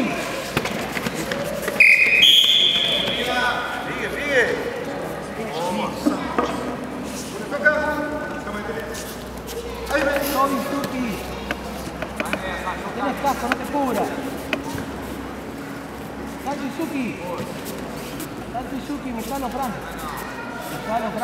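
A crowd of men and women shouts and cheers in a large echoing hall.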